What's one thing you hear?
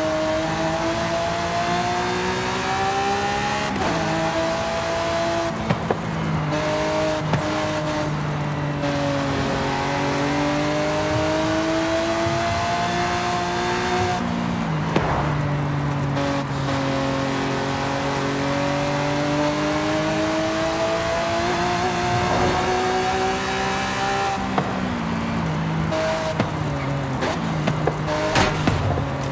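A sports car engine roars at high revs, rising and dropping with gear shifts.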